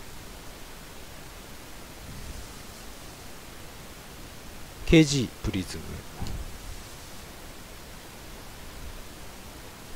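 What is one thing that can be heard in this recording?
Trading cards rustle and slide in hands.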